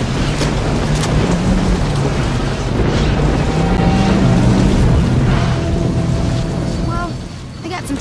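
A limousine engine hums as the car drives along a road.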